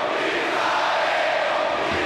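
A large crowd chants in unison.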